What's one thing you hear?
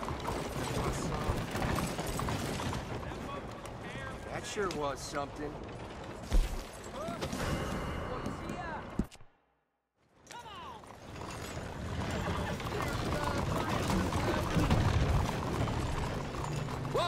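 Horse hooves clop on a dirt street.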